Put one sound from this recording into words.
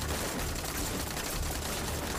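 Soldiers scramble over loose rocks.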